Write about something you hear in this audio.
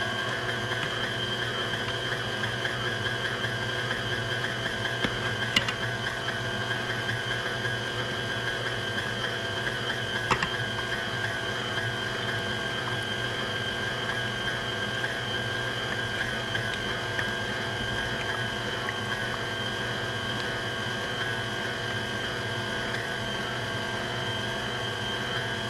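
A stand mixer whirs steadily as its whisk beats a mixture.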